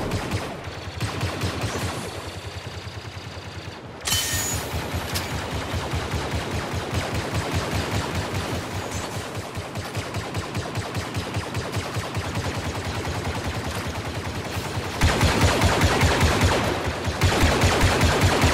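Blaster guns fire in rapid bursts of zapping shots.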